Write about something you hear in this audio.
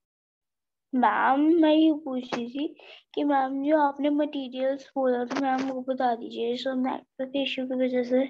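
A child speaks over an online call.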